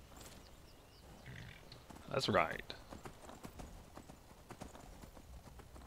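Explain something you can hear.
A horse's hooves clop steadily on a dirt path.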